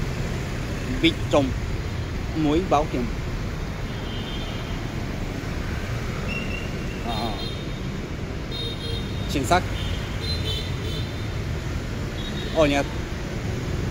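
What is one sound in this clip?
Motorbike horns honk now and then.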